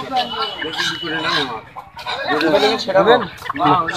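Chickens flap their wings in a basket.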